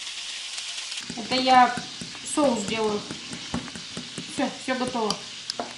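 A spoon stirs thick batter in a glass bowl.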